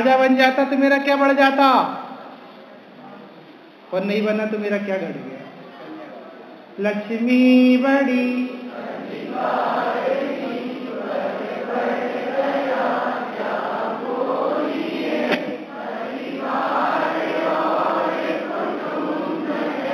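A young man chants in long, held tones through a microphone, with short pauses between phrases.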